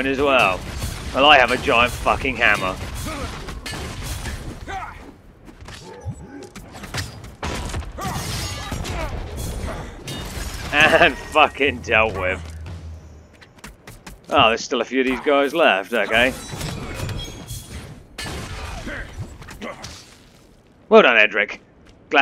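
Weapons slash and strike in a fast, noisy fight.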